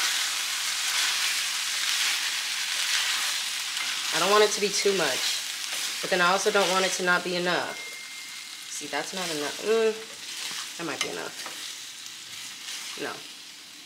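Metal tongs scrape and clatter against a pan.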